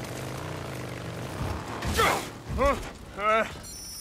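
A motorcycle crashes with a heavy thud.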